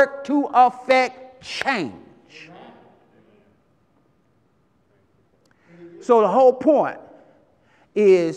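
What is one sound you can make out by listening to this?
A man preaches with animation through a microphone in a large echoing hall, pausing between phrases.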